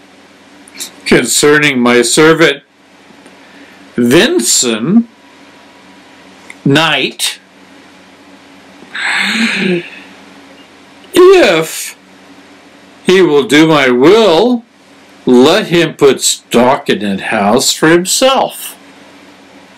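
A man reads aloud close to a microphone, in short bursts with pauses.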